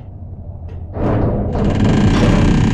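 A heavy metal machine rumbles and whirs into motion.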